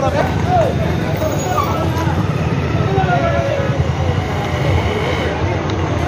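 A bus engine rumbles nearby.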